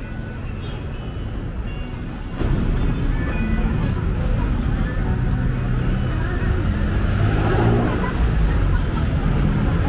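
Traffic hums along a nearby road.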